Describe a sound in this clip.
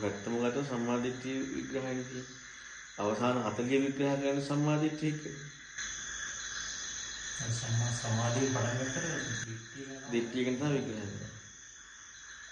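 A man speaks calmly, heard through a microphone.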